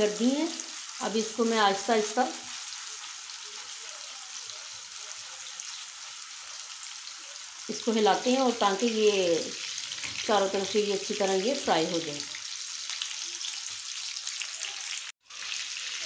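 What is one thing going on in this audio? Meatballs sizzle steadily as they fry in hot oil.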